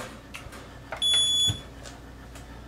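A digital scale beeps once.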